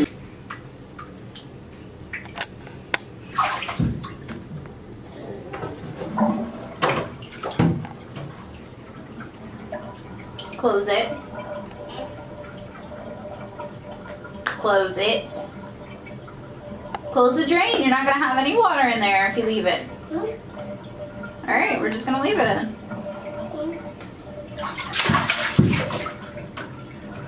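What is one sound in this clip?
Water splashes lightly in a bathtub.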